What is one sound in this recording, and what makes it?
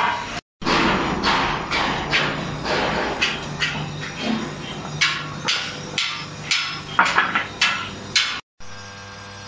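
A hammer strikes a steel plate with sharp, ringing blows.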